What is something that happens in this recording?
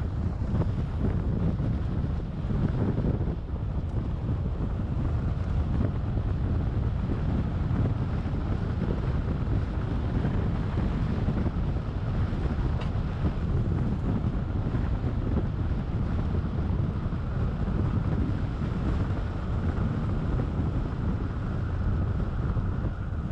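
Tyres crunch and rumble steadily over a gravel road.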